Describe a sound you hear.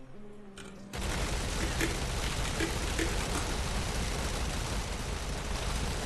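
An energy blast crackles and hums loudly.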